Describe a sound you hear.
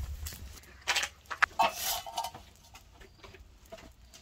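A wire grill rattles as it is set over a small fire.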